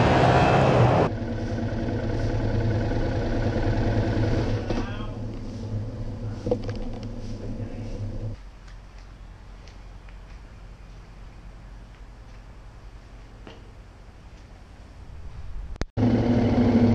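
A motorcycle engine idles and echoes under a low roof.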